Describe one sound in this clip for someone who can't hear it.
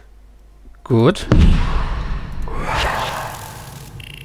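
A magical blast bursts with a loud whoosh.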